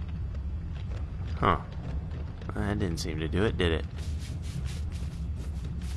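A brush scrubs a surface.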